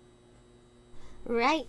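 A young woman speaks into a close microphone.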